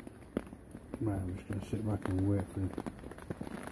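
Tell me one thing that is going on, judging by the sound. A man speaks quietly and drowsily, close to the microphone.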